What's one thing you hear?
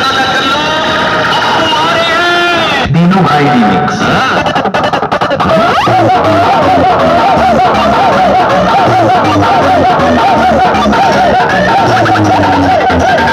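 Loud electronic music booms from large loudspeakers.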